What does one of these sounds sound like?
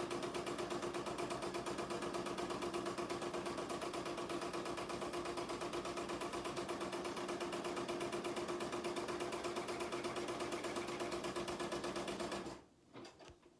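An embroidery machine stitches with a fast, steady rhythmic whirring and tapping.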